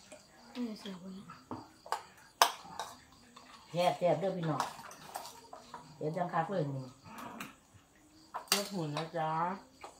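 Spoons and dishes clink.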